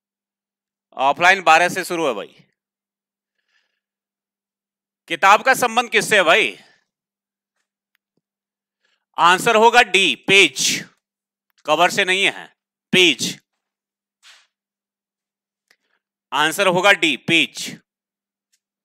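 A man speaks clearly into a headset microphone, in short bursts with pauses.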